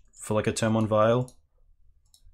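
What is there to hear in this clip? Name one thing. A young man speaks briefly and casually into a microphone.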